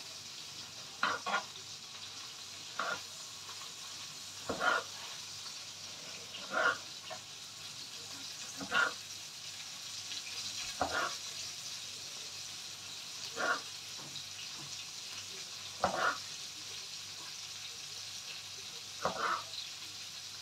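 A knife slices through tomatoes and taps on a wooden board every couple of seconds.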